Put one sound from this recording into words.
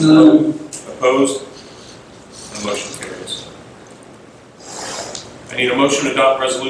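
A man speaks calmly into a microphone in a room with a slight echo.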